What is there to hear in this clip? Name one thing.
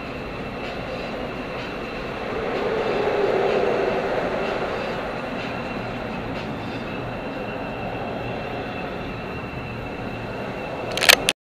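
Road noise rumbles steadily inside a moving car.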